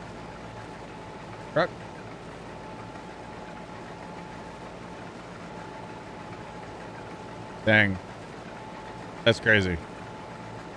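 A harvester engine hums steadily.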